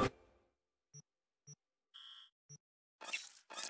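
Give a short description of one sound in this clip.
Short electronic beeps sound.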